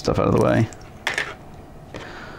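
A plug clicks into a connector.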